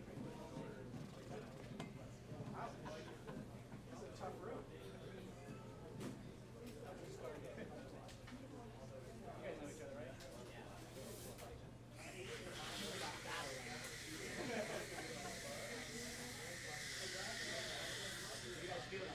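Several men talk and laugh casually nearby.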